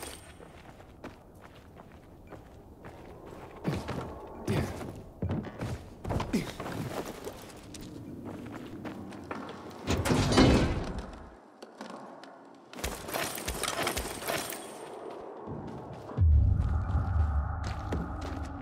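Footsteps scuff across a hard, gritty floor.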